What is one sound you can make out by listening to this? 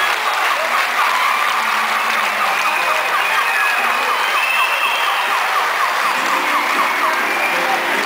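A police siren yelps rapidly.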